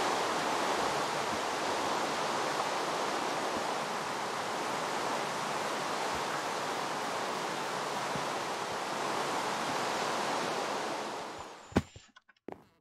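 Heavy rain pours steadily.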